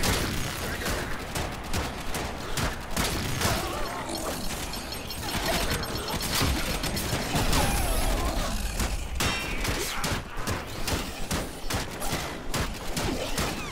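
Blades clang and slash in melee combat.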